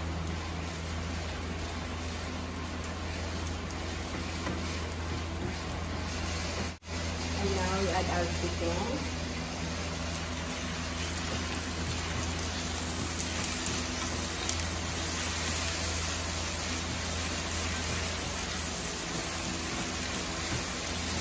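Food sizzles steadily in a hot frying pan.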